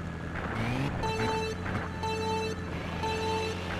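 Electronic countdown beeps sound at even intervals.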